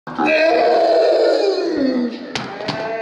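A boy shouts excitedly close by.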